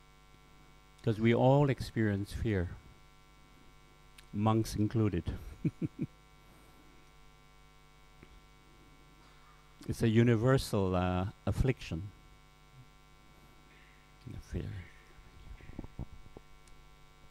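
A middle-aged man speaks with animation, close to a microphone, in short bursts with pauses.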